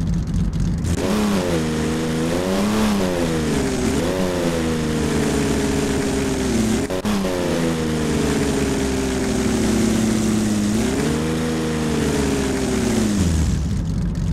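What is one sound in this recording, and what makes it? A car engine hums and revs, rising and falling in pitch.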